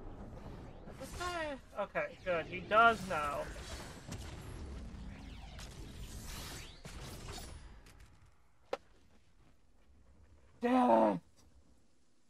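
A man speaks excitedly into a close microphone.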